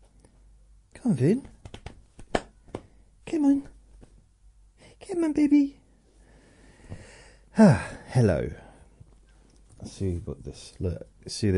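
An older man speaks calmly and expressively into a nearby microphone, in short bursts with pauses.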